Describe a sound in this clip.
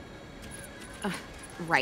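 A young woman speaks up in surprise.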